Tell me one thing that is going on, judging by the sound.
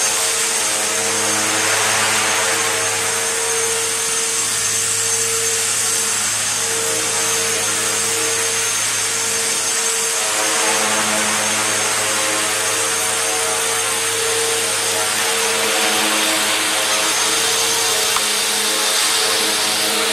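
A small model helicopter's motor and rotor whine steadily as it hovers close by.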